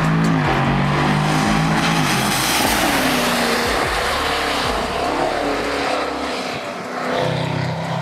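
A car engine roars and revs as a car speeds past.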